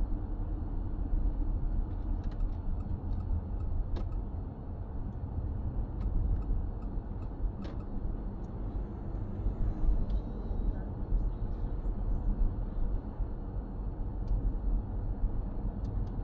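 A car engine hums steadily inside a moving car.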